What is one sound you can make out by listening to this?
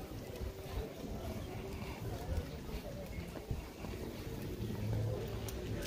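Footsteps splash on a wet pavement.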